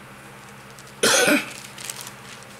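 An elderly man coughs.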